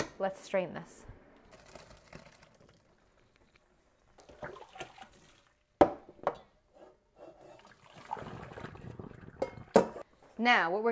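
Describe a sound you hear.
Water runs from a tap into a metal colander.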